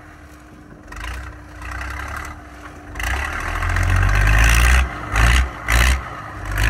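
Dirt and gravel crunch under the truck's tyres.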